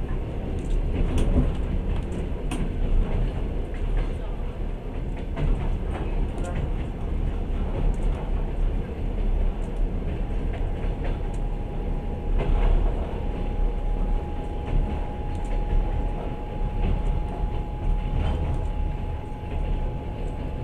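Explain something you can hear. Wheels clatter over rail joints now and then.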